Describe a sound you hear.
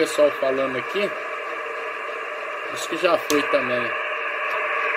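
A man's voice comes through a radio loudspeaker in short, crackly bursts.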